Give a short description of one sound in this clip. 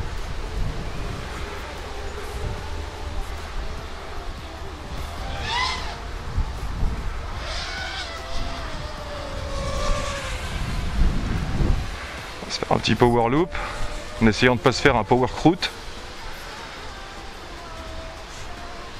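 Wind rushes past a drone in flight.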